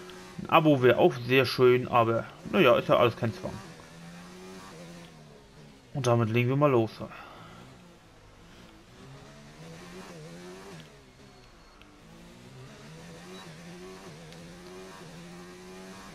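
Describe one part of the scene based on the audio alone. A racing car engine roars steadily, its pitch rising and falling with gear changes.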